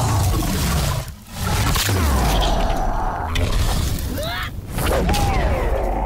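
Flames roar and crackle.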